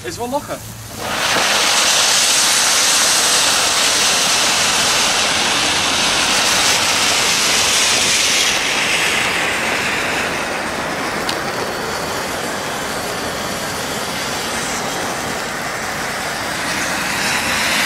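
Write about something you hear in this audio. A firework fountain hisses and crackles loudly as it sprays sparks.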